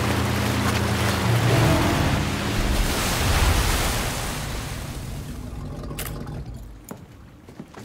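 A jet ski engine roars and slowly fades.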